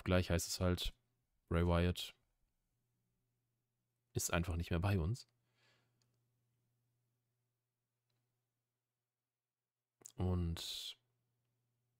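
A young man speaks calmly into a close microphone, in short bursts with pauses.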